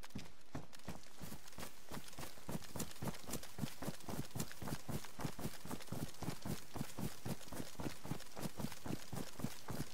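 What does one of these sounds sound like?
Footsteps run through tall grass.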